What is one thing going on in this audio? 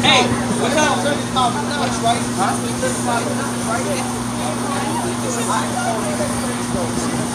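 A car engine idles with a steady low hum.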